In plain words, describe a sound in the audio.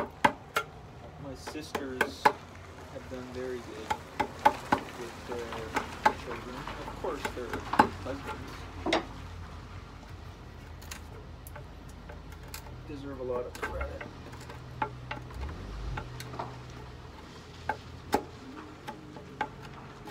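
A mallet taps a chisel into wood in sharp knocks.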